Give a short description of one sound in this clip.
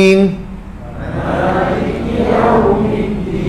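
A man speaks softly through a microphone.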